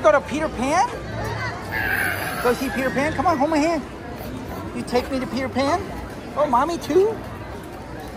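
A toddler squeals and babbles excitedly close by.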